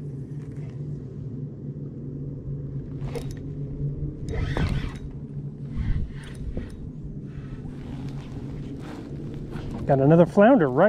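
Water laps gently against a small boat.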